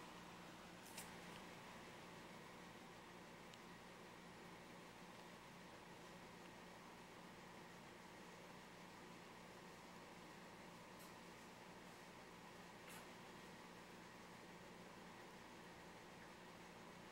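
Puppies' paws patter and scratch on a wooden floor.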